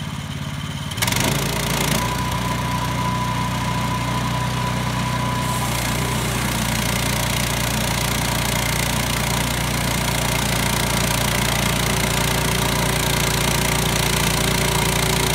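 A band saw whines loudly as it cuts through a log.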